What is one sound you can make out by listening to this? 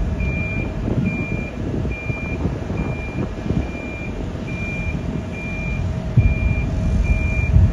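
A vehicle's warning beeper beeps steadily and repeatedly.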